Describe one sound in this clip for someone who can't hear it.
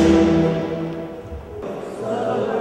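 A guitar plays.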